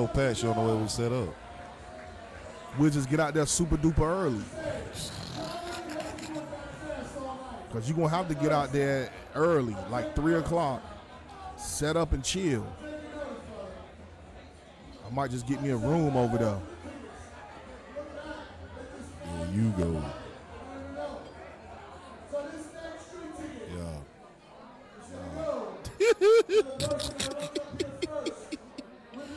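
A man talks with animation into a microphone, close by.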